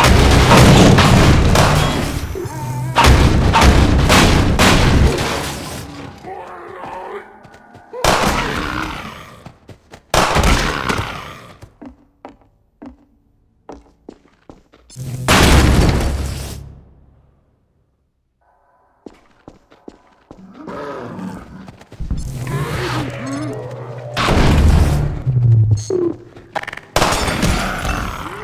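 A heavy weapon fires in loud, booming blasts.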